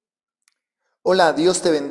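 A man speaks with animation into a clip-on microphone, close by.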